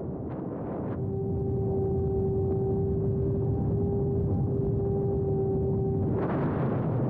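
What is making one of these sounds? A small propeller engine hums steadily at a high pitch.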